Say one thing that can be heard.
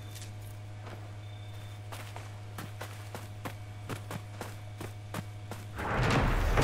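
Footsteps patter quickly over dirt and stone.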